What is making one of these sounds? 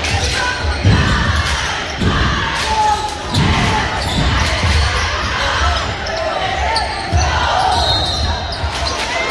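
Sneakers squeak on a gym floor.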